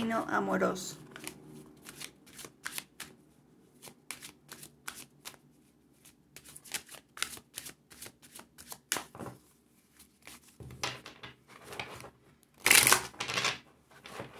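Cards shuffle and riffle with quick soft flicks.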